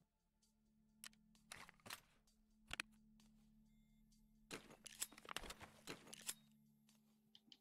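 Short clicks and rustles sound as gear items are moved about.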